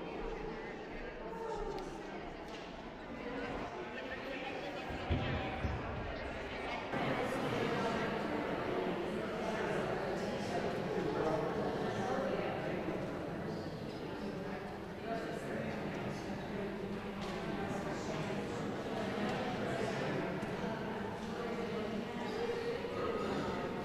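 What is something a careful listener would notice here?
A congregation of older men and women sings together in a large echoing hall.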